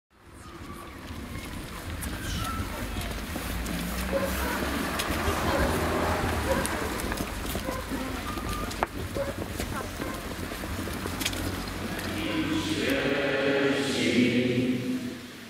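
Young people chatter quietly in a crowd.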